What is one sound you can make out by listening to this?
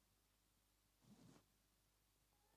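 A body thuds heavily onto a hard floor.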